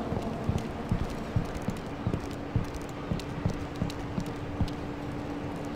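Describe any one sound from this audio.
Footsteps tap quickly on cobblestones.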